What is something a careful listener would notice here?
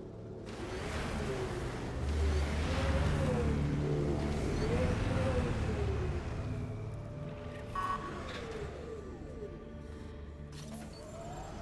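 A heavy vehicle's engine rumbles and whines as it drives over rough ground.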